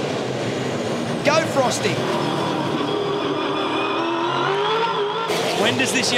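Racing car engines roar at high revs as cars speed past.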